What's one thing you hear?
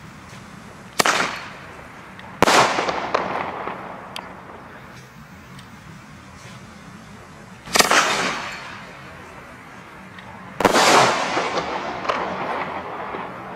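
Fireworks shoot off with loud bangs.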